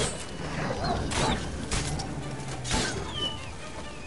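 Wolves snarl and yelp.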